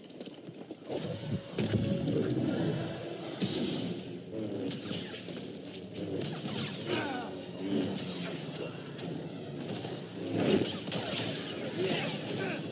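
Energy blades hum and clash in a fight.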